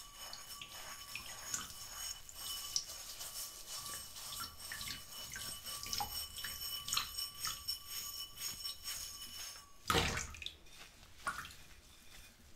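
Water splashes softly in a sink.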